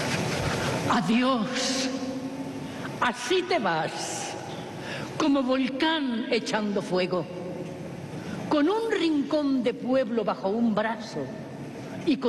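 A woman recites dramatically on a stage.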